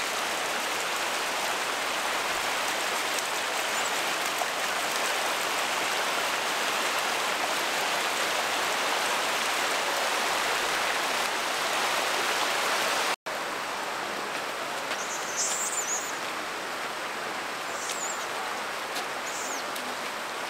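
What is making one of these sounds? Water trickles and splashes steadily over rocks outdoors.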